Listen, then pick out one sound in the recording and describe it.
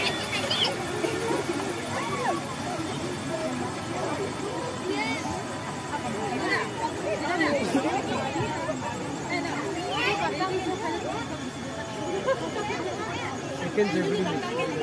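A crowd of men and women chatters in many overlapping voices outdoors.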